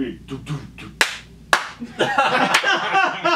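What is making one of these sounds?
Hands clap sharply.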